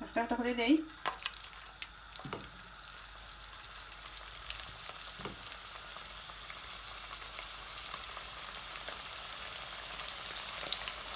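Patties sizzle and crackle as they fry in hot oil.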